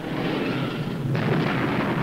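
A shell explodes with a loud blast.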